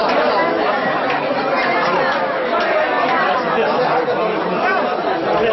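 A crowd of men and women talks loudly all at once, close by.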